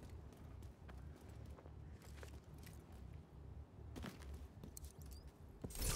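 Boots clatter on a metal ladder.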